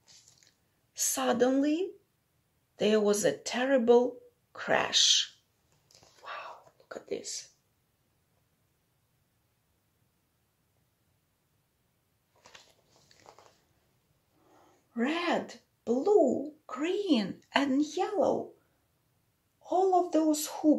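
A woman reads aloud with expression, close by.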